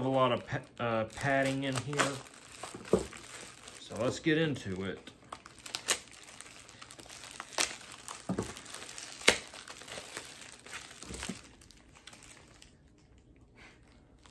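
Plastic packaging rustles and crinkles in hands.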